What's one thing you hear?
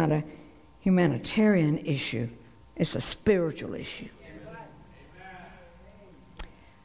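An older woman speaks calmly through a microphone.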